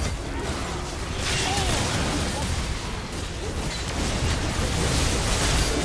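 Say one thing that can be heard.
Game spell effects whoosh and crackle in a fast fight.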